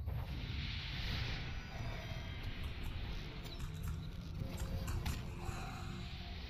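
Magic spells whoosh and chime during a fight.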